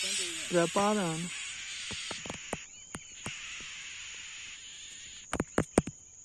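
Nestling birds cheep with thin, high, rapid begging calls close by.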